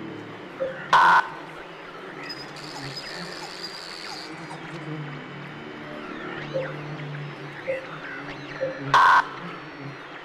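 A keypad sounds a short, harsh buzz.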